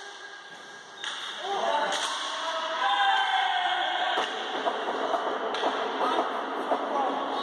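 Sticks clack against the ball and the hard floor.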